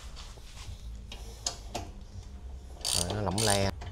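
A ratchet wrench clicks as a bolt is turned.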